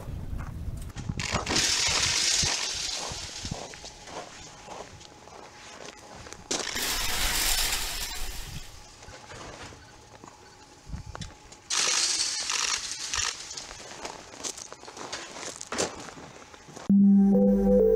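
Wet concrete scrapes and pours down a metal chute.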